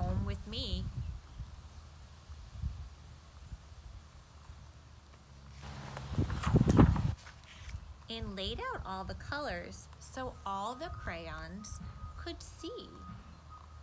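A woman reads aloud close by, with lively expression.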